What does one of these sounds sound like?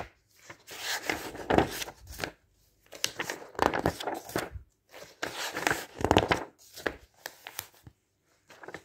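Magazine pages rustle and flap as they are turned quickly, close by.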